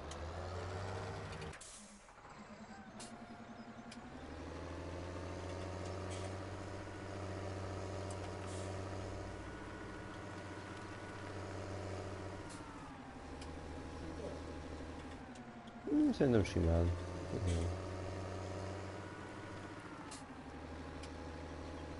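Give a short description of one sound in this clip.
A tractor engine hums steadily, its pitch shifting slightly as it drives.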